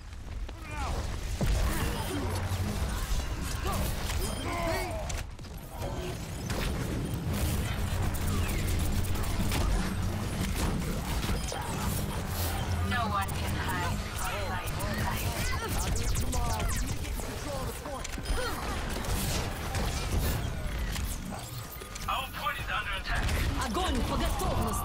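A heavy gun fires rapid rumbling bursts.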